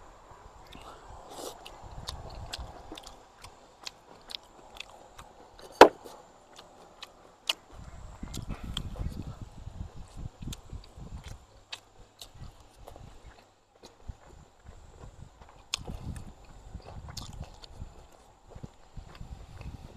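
A middle-aged man chews and smacks his lips with his mouth full.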